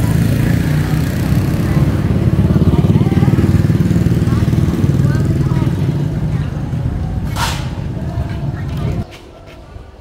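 A motorbike engine rumbles nearby.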